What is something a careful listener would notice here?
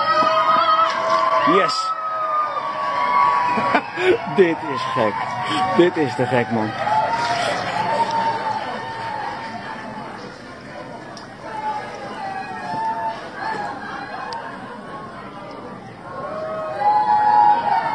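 Water splashes as a man swims.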